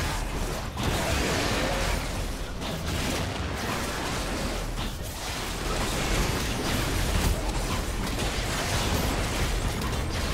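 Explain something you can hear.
Game battle effects clash and burst in quick succession.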